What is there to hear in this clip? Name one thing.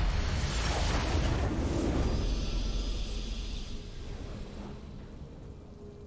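A game's victory fanfare blasts loudly and fades away.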